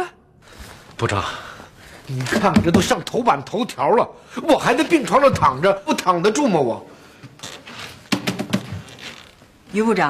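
A middle-aged man speaks urgently nearby.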